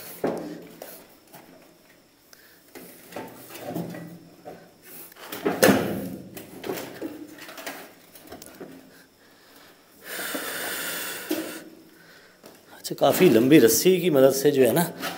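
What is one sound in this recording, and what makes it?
A wooden box scrapes and knocks on a concrete floor.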